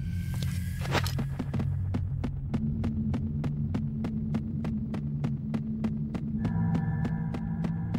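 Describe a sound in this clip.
Footsteps clack in a quick, even rhythm on ladder rungs as a game character climbs down.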